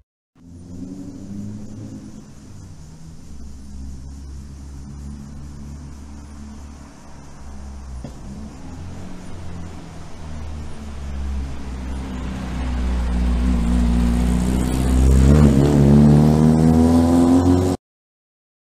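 An old van engine rumbles, growing louder as the van approaches and drives past.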